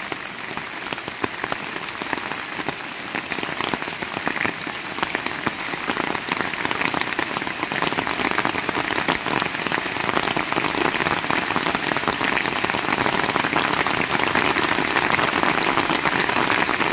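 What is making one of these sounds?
Heavy rain pours steadily outdoors, growing louder.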